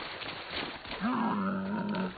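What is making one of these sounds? A camel grunts nearby.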